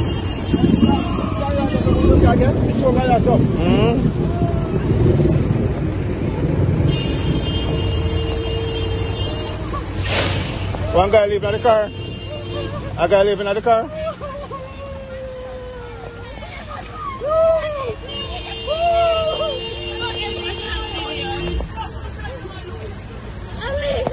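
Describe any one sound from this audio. Heavy rain pours down onto a road outdoors.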